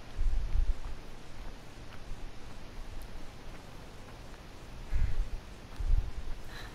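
Footsteps tread softly on a path outdoors.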